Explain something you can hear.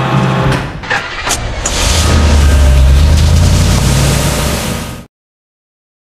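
A cartoon truck engine rumbles and drives away.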